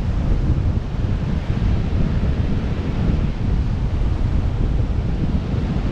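Wind rushes loudly past a glider in flight.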